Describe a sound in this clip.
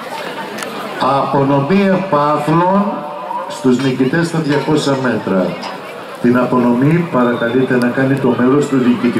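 A woman close by speaks loudly.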